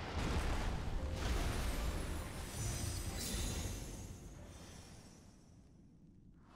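A deep magical rumble swells and slowly fades.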